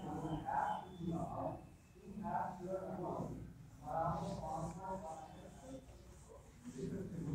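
A man speaks calmly and steadily, as if explaining, close to a microphone.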